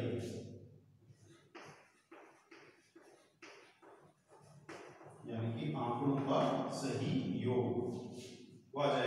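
A man speaks steadily, explaining.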